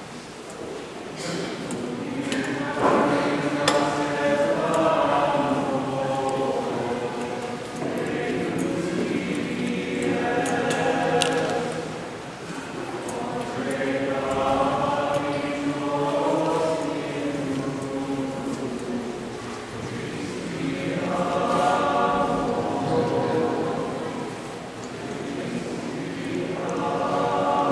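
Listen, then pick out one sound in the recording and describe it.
A crowd of voices sings slowly together, echoing in a large hall.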